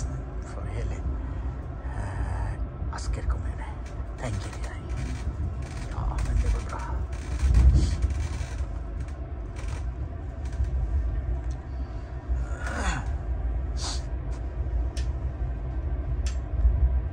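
A train carriage rattles and creaks as it moves.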